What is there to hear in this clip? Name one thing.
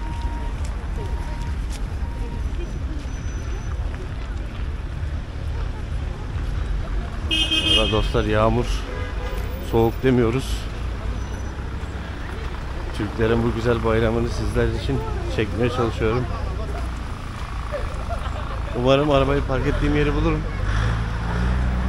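City traffic rumbles steadily in the background, outdoors.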